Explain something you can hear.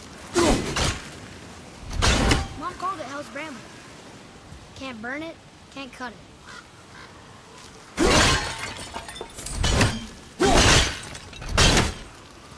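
A heavy axe swings and strikes with loud thuds.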